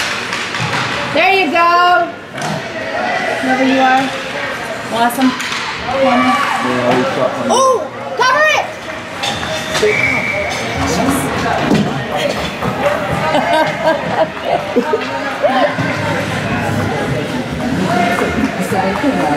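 Skates scrape and swish on ice.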